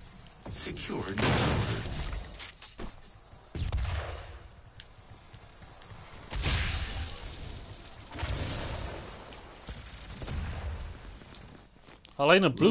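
Heavy gunshots and blasts boom in quick bursts.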